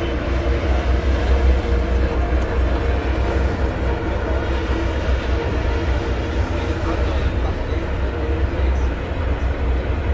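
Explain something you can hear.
A ferry's engine rumbles steadily.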